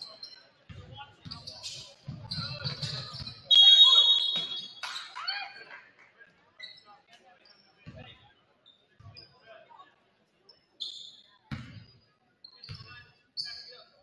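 A basketball bounces with dull thuds.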